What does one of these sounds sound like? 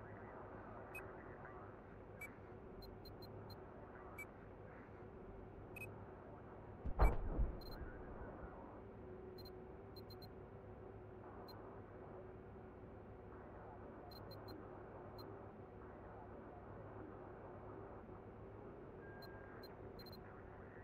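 Short soft clicks sound now and then as menu items are chosen.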